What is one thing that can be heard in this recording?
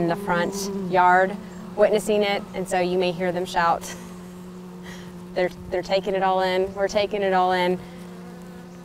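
A woman speaks calmly close to a microphone, with short pauses.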